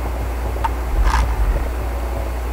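A heavy thud sounds as a body lands on pavement.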